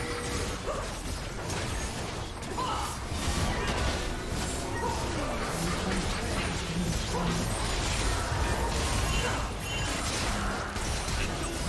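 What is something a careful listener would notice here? Magic spells crackle and burst in a fast, busy fight.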